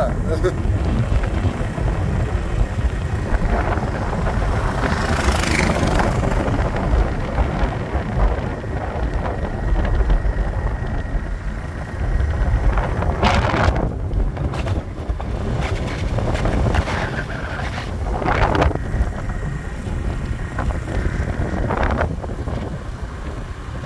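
Wind rumbles and buffets loudly against the microphone.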